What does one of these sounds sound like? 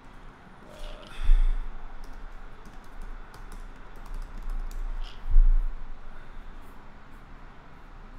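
Keys clatter softly as a man types on a keyboard.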